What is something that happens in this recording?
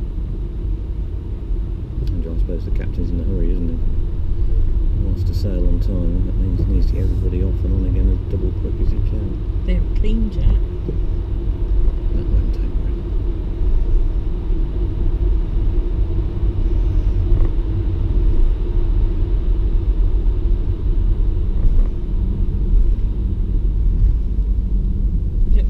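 A car engine rumbles steadily as the car drives slowly.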